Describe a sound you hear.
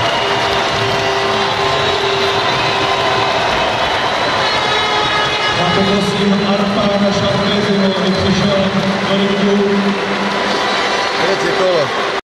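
A large crowd cheers and chatters loudly in an echoing arena.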